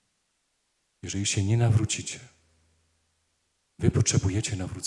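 A middle-aged man speaks slowly and solemnly through a microphone.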